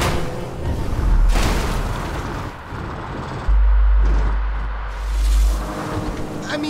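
A car bumps heavily over rough ground with deep thuds.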